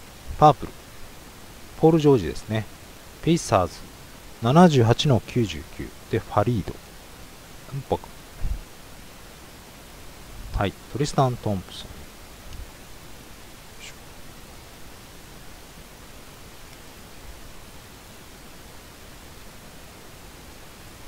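Trading cards rustle and slide against each other in hands.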